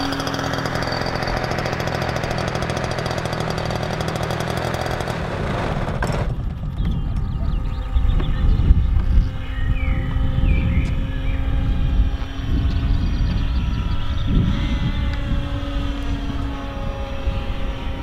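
An electric model airplane whines overhead, its propeller humming.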